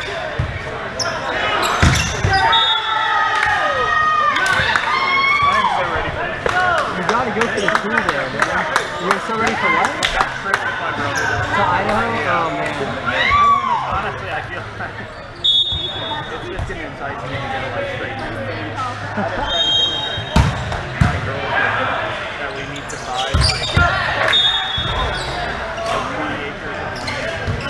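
Players call out and shout to each other in a large echoing hall.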